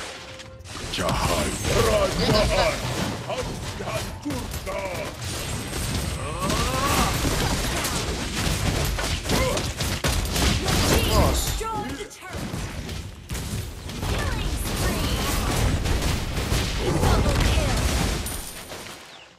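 Magic blasts and weapon hits crackle and boom in a fast video game battle.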